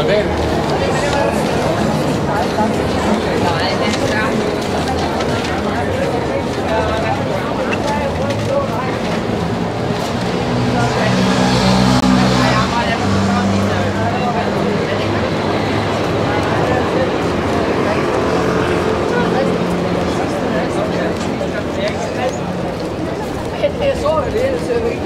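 A busy crowd of people chatters outdoors.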